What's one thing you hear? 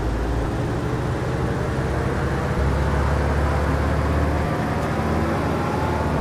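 A bus engine hums steadily, shifting pitch as the bus drives.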